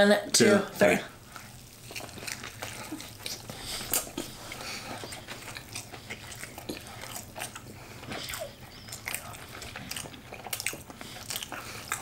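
A young woman chews food noisily, close to a microphone.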